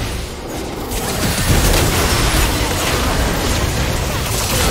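Game characters' blows clash and thud.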